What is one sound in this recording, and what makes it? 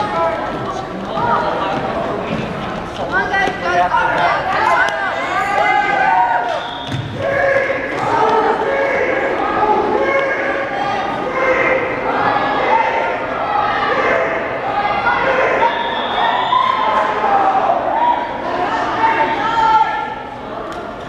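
A man reads out loudly in a large echoing hall.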